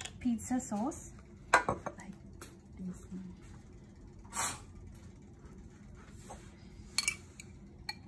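A lid twists and clicks on a glass jar.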